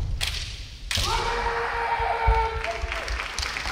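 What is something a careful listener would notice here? A kendo fencer gives a loud, drawn-out shout.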